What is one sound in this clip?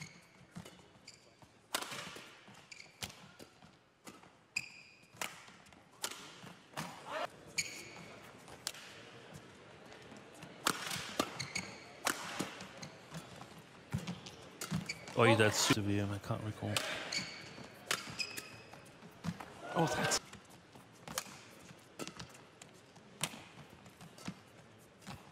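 Badminton rackets smack a shuttlecock back and forth in a large hall.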